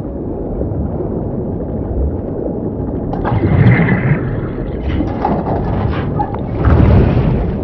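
Muffled underwater rumbling and churning water fill the space.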